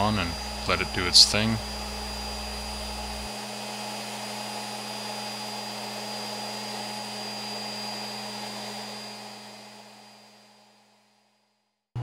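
A random orbit sander whirs on wood, then fades out.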